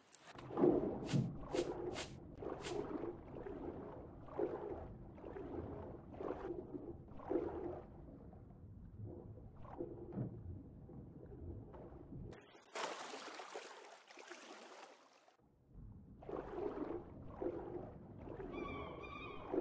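Water gurgles and swirls as a swimmer moves underwater.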